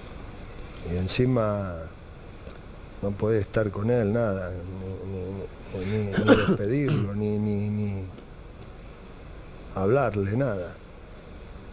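A middle-aged man speaks calmly into a microphone in short bursts.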